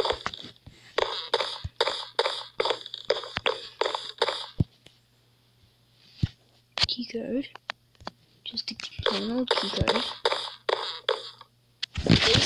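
Footsteps tap at an even pace on a hard floor.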